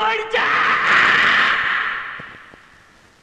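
A man shouts loudly with joy.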